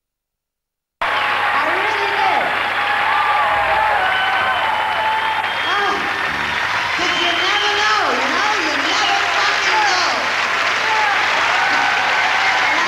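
A crowd cheers and whistles loudly in a large hall.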